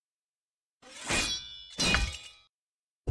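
Short chiming swishes sound as a menu opens.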